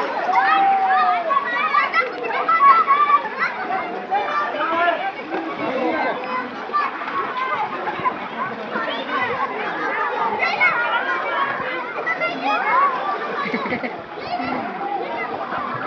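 A crowd of children shout and squeal throughout.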